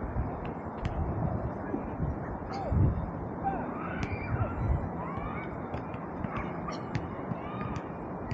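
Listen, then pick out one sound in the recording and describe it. Young men shout to each other far off.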